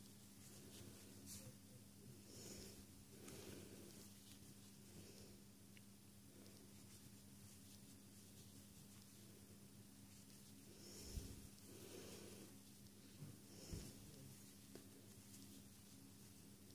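Knitting needles tap and click softly against each other.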